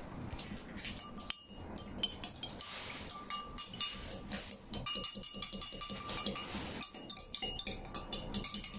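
A metal spoon clinks against a drinking glass.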